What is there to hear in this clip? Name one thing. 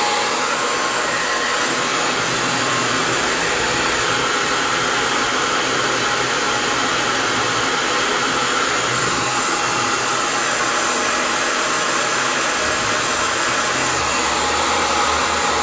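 A hair dryer blows with a steady, loud whoosh close by.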